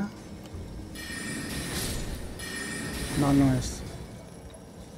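A bright magical shimmer rises and fades.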